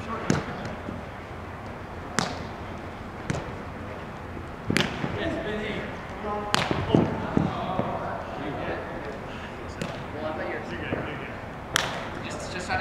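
A ball thuds sharply, echoing in a large hall.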